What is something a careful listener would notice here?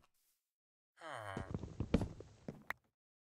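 A video game wooden block is chopped and breaks apart.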